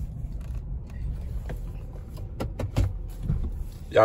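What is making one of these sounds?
Buttons on a steering wheel click.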